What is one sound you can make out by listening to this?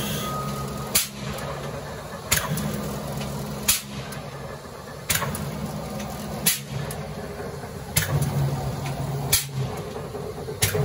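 A power press slams down with loud, sharp bangs at a steady, even pace.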